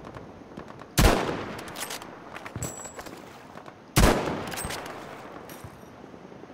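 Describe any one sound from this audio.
A rifle fires sharp, loud shots that echo away.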